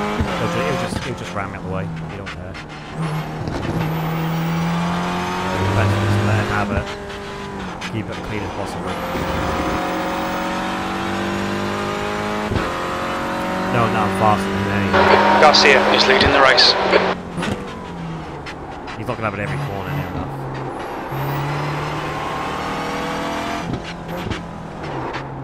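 A car engine revs up and down through gear changes.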